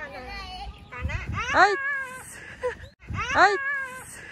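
A small child squeals and shouts excitedly close by.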